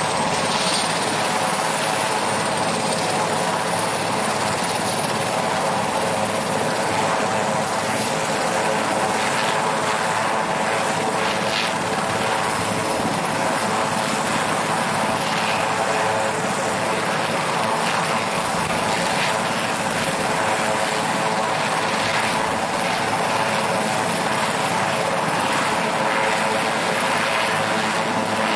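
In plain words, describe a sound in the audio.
A helicopter engine whines and its rotor drones steadily close by, outdoors.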